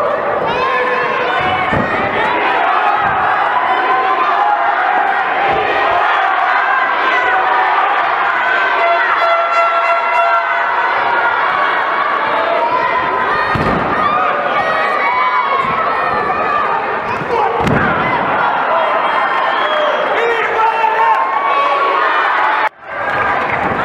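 A crowd shouts and cheers in an indoor arena.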